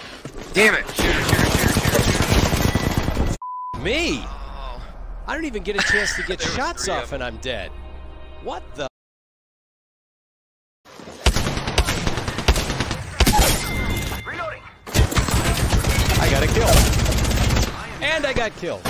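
Rapid gunshots fire in a video game.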